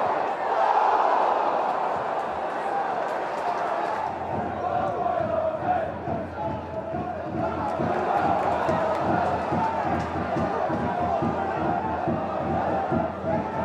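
A large crowd cheers and murmurs in an open stadium.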